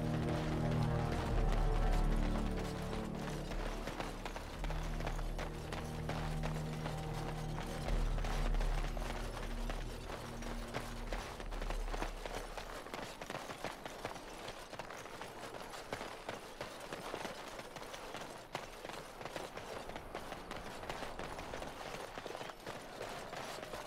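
Footsteps crunch steadily on a dirt path.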